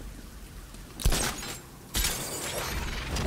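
A grappling line fires with a sharp whoosh.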